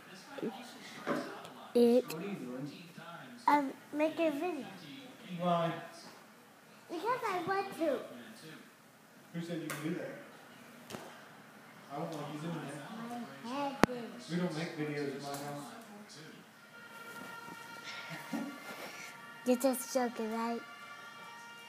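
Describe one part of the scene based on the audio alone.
A young girl talks and giggles playfully, close by.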